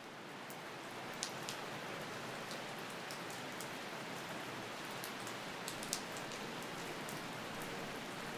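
Steady rain falls and patters, with scattered drips.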